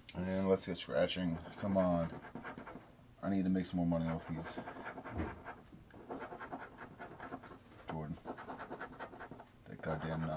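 A coin scratches across a card.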